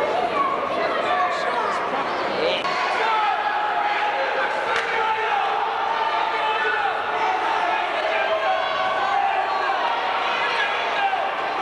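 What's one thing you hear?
A crowd of people chatter and call out in a large echoing hall.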